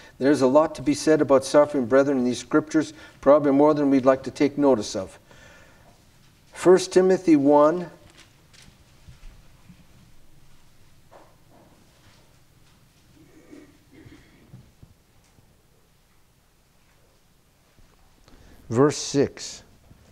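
A middle-aged man reads aloud calmly into a microphone, with pauses.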